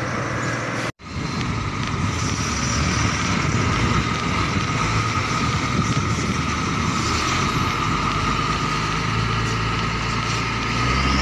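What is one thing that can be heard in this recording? Truck engines idle with a low rumble nearby.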